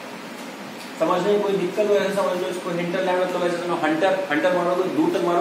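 A young man speaks clearly and steadily, as if explaining.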